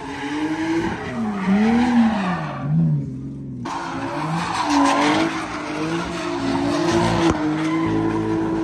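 Tyres screech on pavement.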